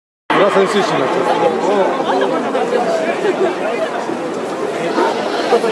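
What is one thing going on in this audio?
A large stadium crowd sings and chants loudly, echoing around the stands.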